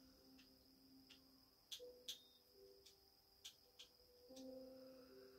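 A video game menu gives short clicks through a television speaker.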